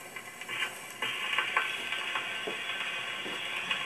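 An old gramophone plays tinny music.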